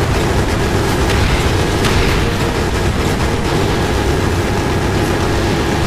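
A helicopter's rotor thumps loudly and steadily.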